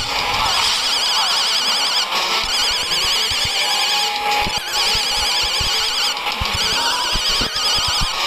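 Electronic laser beams zap repeatedly.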